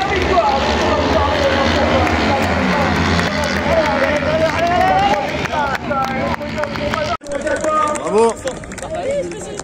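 A racing car engine roars and revs up and down.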